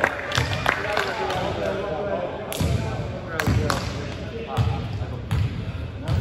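A volleyball thuds off hands and arms in a large echoing gym.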